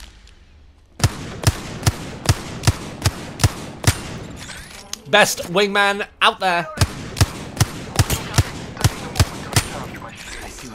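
A rifle fires in a rapid string of loud, sharp shots.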